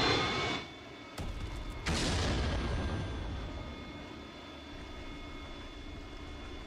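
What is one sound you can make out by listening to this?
A jet engine roars steadily as a plane flies past.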